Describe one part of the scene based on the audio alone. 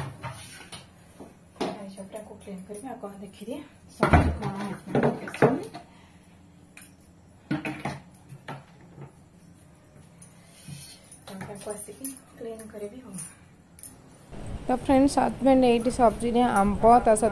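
A young woman talks nearby in a calm, chatty voice.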